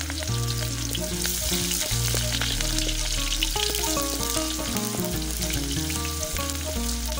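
A wooden spatula scrapes against a metal pan.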